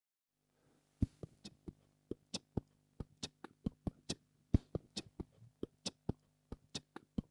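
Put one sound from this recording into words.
A man makes sharp percussive mouth sounds into a close microphone.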